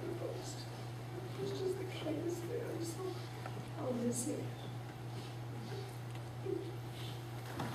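A woman speaks calmly over a microphone, heard from a distance in a room.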